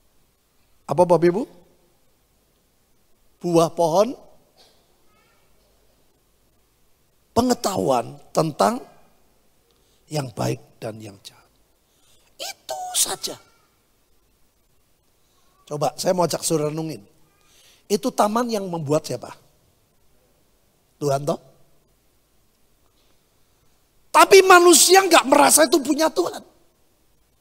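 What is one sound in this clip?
A middle-aged man preaches into a microphone in short, emphatic bursts with pauses between.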